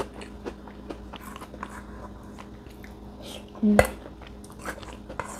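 A young woman chews crunchy food with her mouth close by.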